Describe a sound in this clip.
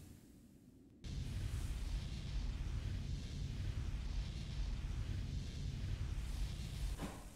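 Low, rumbling ambient music drones steadily.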